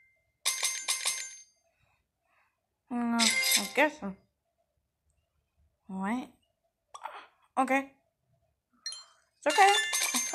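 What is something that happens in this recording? Bright chiming game sound effects play as coins are collected.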